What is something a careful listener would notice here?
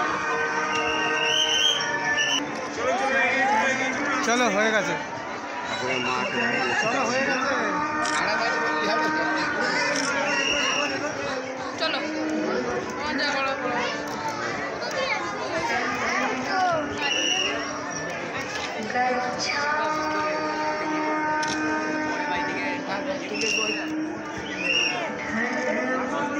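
A crowd of men and women chatters all around in a busy, echoing space.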